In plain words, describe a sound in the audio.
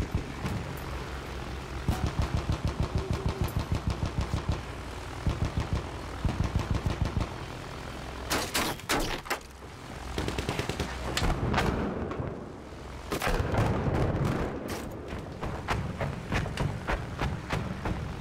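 The twin piston engines of a biplane bomber drone.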